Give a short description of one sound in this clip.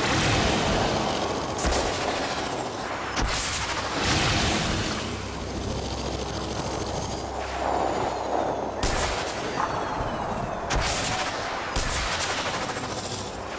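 Energy beams fire with a sharp buzzing hiss.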